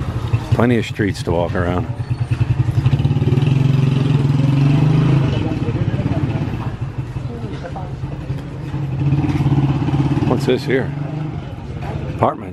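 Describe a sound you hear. A motorcycle engine idles nearby with a low steady rumble.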